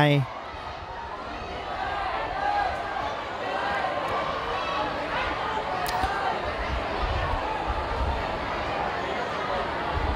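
A crowd of young men shouts and calls out across a field outdoors.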